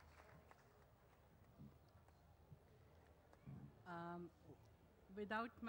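A middle-aged woman speaks into a microphone over loudspeakers.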